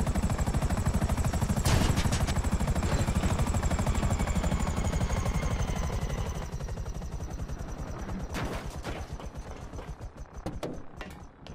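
A helicopter's rotor chops steadily, then fades away.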